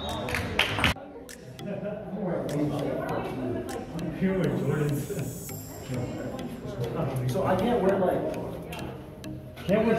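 Young men and women chat casually nearby.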